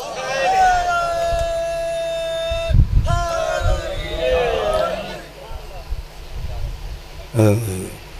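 A man chants and recites loudly into a microphone, his voice carried over loudspeakers outdoors.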